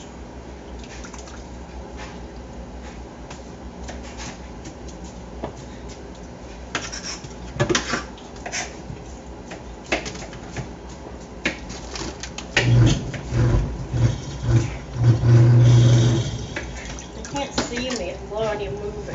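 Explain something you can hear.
Dishes clink and knock together in a sink.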